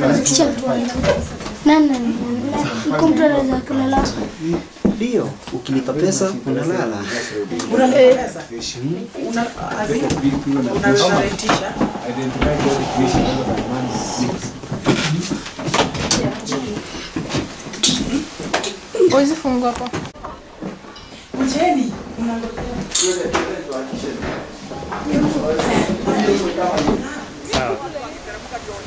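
Several young people talk and laugh close by.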